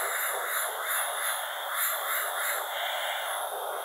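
An airbrush hisses steadily as it sprays paint.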